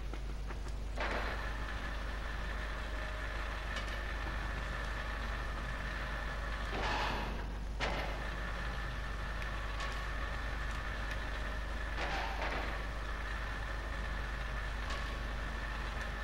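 A metal lift whooshes and hums as it moves up and down.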